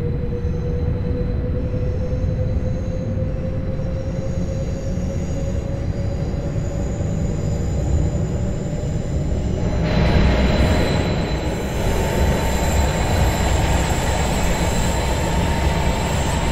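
Train wheels rumble steadily over the rails.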